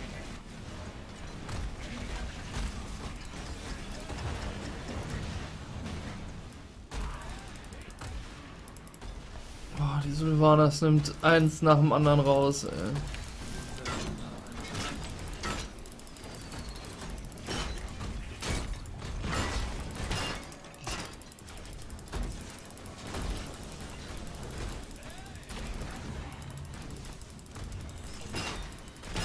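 Video game battle effects crackle, zap and boom.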